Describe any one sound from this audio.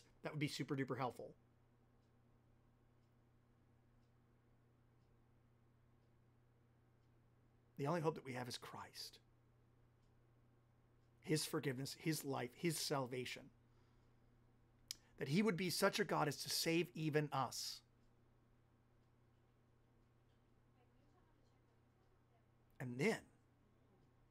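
A man speaks calmly and with animation into a close microphone, in short bursts with pauses.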